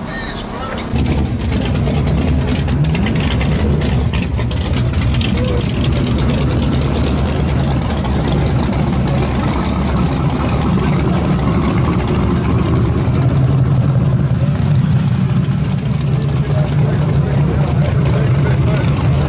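A race car engine rumbles loudly and deeply.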